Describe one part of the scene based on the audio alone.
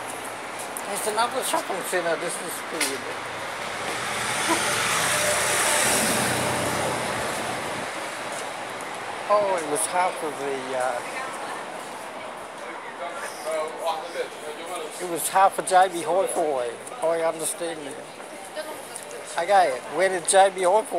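A middle-aged man talks calmly close to a phone's microphone.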